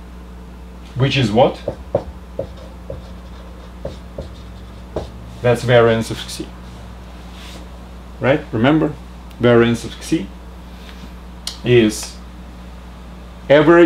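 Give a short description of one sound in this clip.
A middle-aged man speaks calmly and clearly, close by, in short phrases.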